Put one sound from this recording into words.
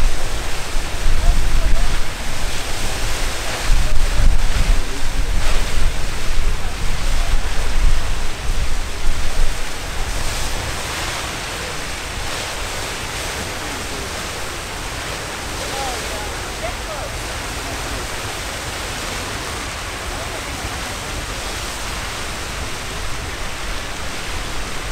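A geyser hisses and roars steadily as it sprays water into the air.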